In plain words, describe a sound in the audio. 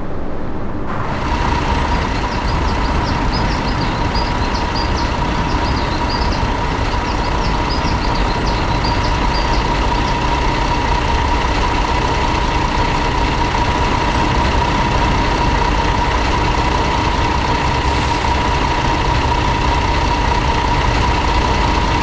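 A bus engine hums louder as the bus drives slowly.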